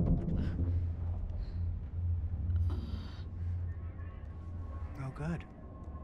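A young woman groans softly while waking.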